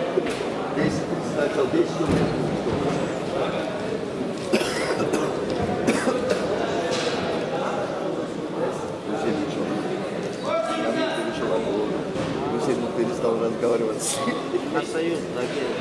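Men talk with each other close by.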